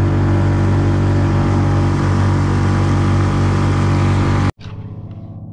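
A boat engine roars at high speed, then cuts out abruptly.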